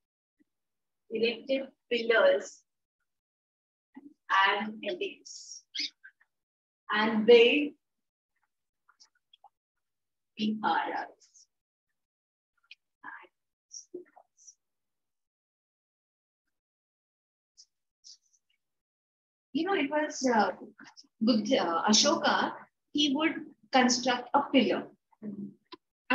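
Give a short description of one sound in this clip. A woman speaks calmly and clearly, close to a microphone, in short bursts with pauses.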